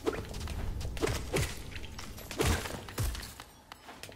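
Sharp impacts crack as blows land on creatures.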